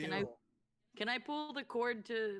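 A young woman speaks with animation over an online call.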